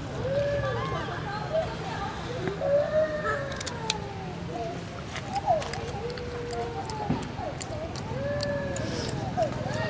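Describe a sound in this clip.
A monkey crunches on a piece of cucumber.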